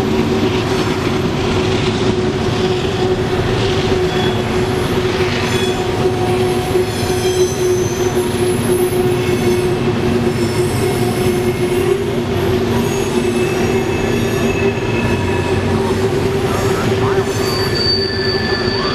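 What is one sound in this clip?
Steel wheels squeal on the rails.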